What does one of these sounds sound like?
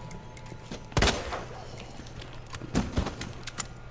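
A pistol fires loudly.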